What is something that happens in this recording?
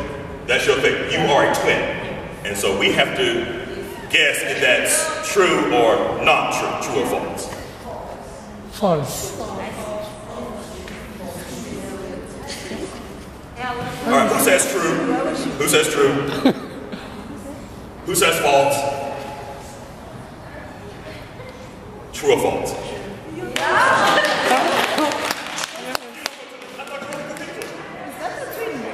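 A middle-aged man speaks with animation in a large echoing hall.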